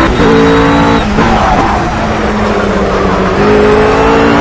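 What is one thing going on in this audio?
A GT3 race car engine drops revs as it downshifts under braking.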